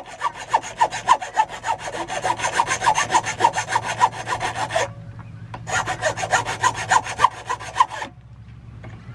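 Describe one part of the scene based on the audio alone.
A metal file rasps quickly back and forth across metal.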